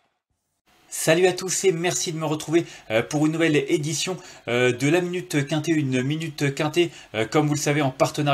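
A man speaks calmly and steadily close to a microphone.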